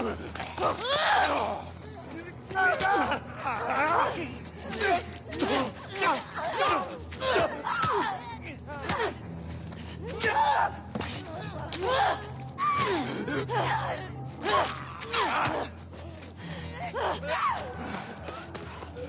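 Infected men shriek and snarl close by.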